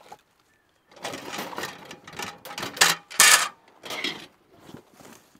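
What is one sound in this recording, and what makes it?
A metal folding fire pit rattles and clanks as a man sets it up.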